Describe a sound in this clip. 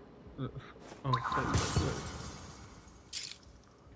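A magical burst whooshes and crackles.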